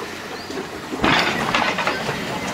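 Water gushes and rushes loudly.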